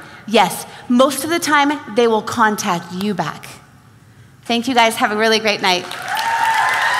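A woman speaks with animation into a microphone in a large hall.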